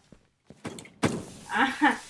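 A sharp explosion bursts with a loud bang.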